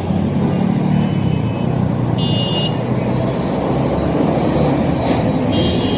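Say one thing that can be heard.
A bus engine drones as it passes close by.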